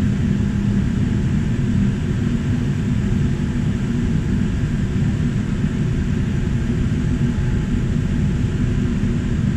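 Jet engines hum and roar steadily as an airliner taxis, heard from inside the cabin.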